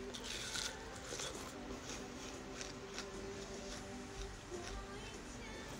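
A young woman bites and chews juicy watermelon close up, with wet crunching sounds.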